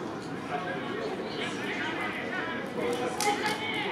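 Men and women talk nearby outdoors.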